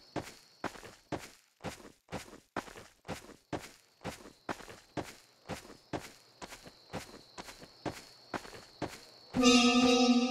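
Footsteps crunch steadily over the ground.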